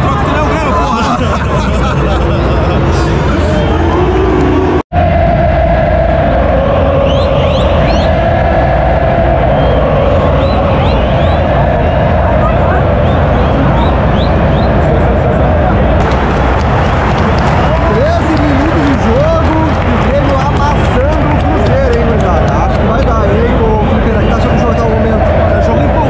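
A large stadium crowd chants and sings loudly all around.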